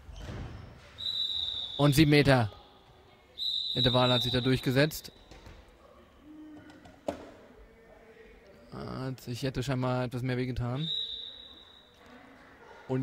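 Sneakers squeak sharply on a hard indoor court floor.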